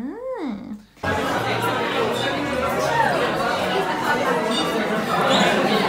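People chatter in a busy, noisy room.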